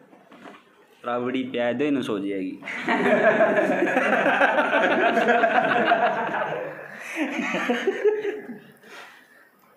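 A group of young men laugh loudly together.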